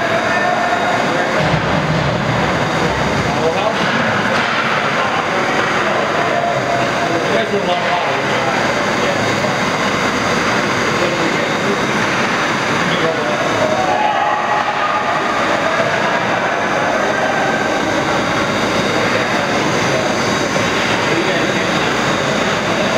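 Spectators talk and call out in an echoing ice rink.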